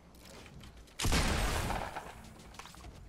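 A loud crashing burst of video game noise sounds and fades.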